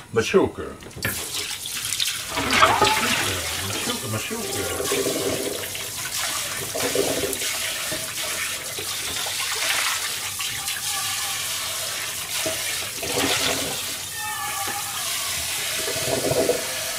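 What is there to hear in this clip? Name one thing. Water runs into a metal sink.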